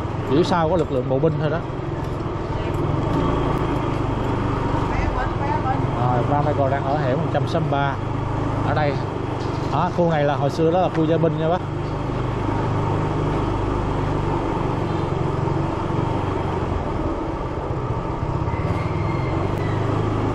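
A motorbike engine hums steadily at low speed.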